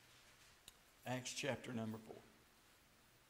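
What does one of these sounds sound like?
An elderly man speaks briefly through a microphone in an echoing hall.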